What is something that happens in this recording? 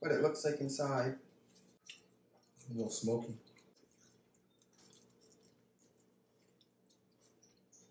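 Crisp food crunches as people bite and chew.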